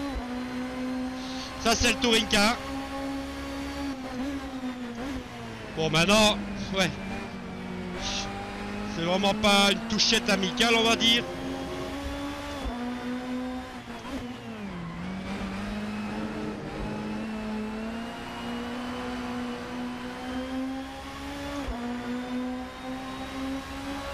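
A four-cylinder touring car engine screams at full throttle, shifting through the gears.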